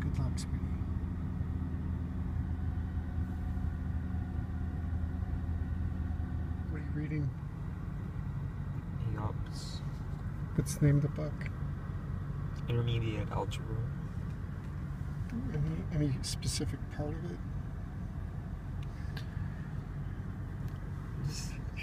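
A car engine hums steadily inside a car.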